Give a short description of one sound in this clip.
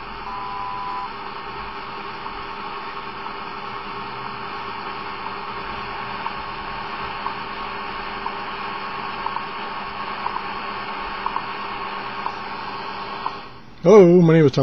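A radio hisses with steady static and faint ticks.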